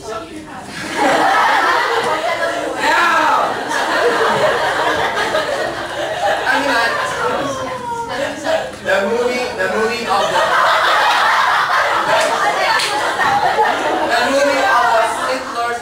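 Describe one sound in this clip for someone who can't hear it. A group of young students talk and laugh together.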